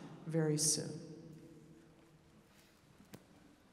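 A final musical chord rings on and slowly fades through a large echoing hall.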